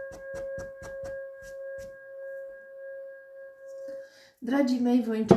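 A singing bowl rings with a steady, humming tone that slowly fades.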